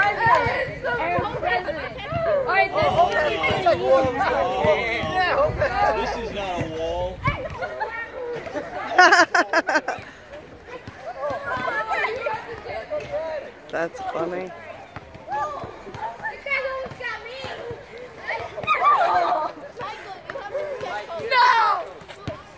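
Children and adults talk and call out nearby outdoors.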